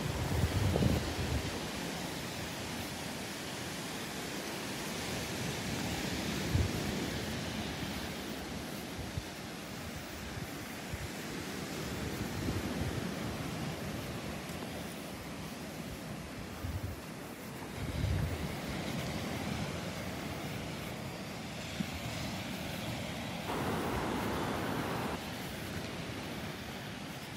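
Waves break and wash onto a beach nearby.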